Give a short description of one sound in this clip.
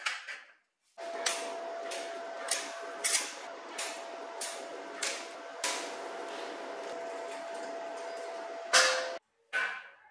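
An electric welder crackles and sizzles steadily.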